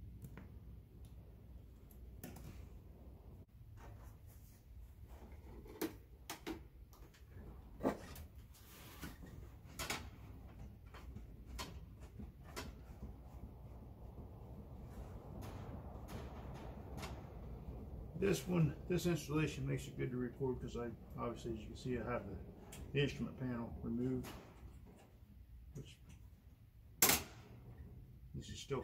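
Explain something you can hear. Metal parts click and knock as they are handled.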